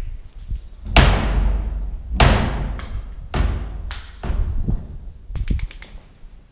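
A wooden door bangs repeatedly against its frame, echoing through empty rooms.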